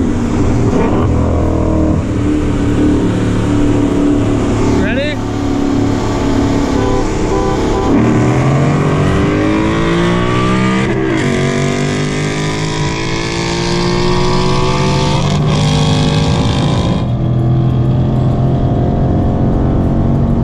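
Wind and tyres rush steadily outside a fast-moving car.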